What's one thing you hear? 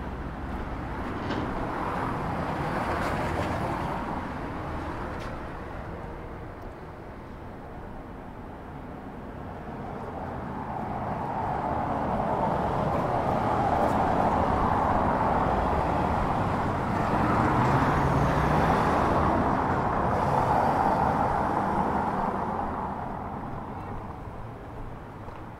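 Traffic rumbles past on a nearby street outdoors.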